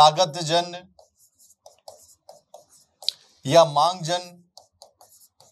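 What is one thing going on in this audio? A marker squeaks and taps on a board.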